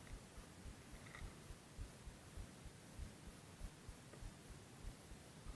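Water laps softly against a small boat's hull.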